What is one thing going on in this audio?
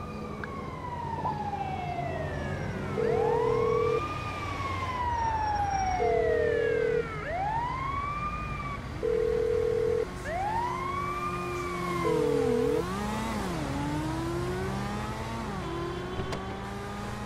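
An ambulance siren wails loudly, sweeping up and down with short blaring bursts.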